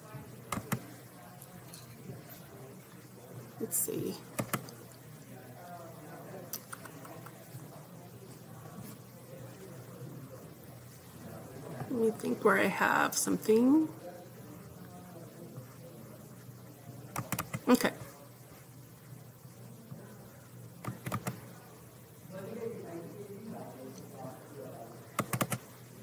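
A woman speaks calmly and close to a microphone.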